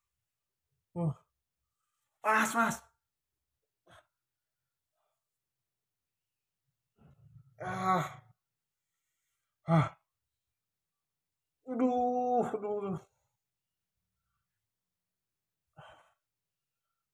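A young man groans loudly in short bursts close by.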